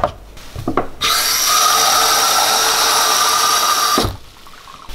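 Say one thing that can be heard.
Water runs from a tap into a plastic cup.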